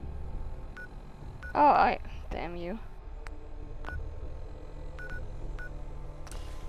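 Short electronic beeps sound.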